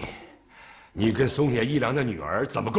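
An older man speaks sternly in a low voice.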